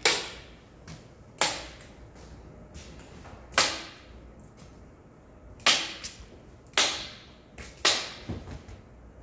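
A nail gun fires into a wooden board with sharp, echoing bangs.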